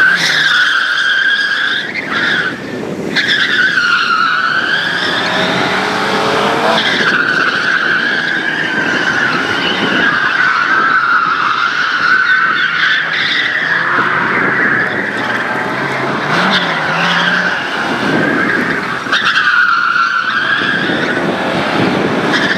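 A four-cylinder Lada rally car revs hard and shifts through a slalom.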